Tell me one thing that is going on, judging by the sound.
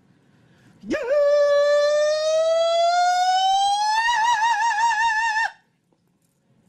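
A young man sings a long, rising note with a wavering voice.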